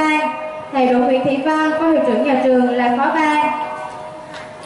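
A young girl sings a slow, held melody into a microphone.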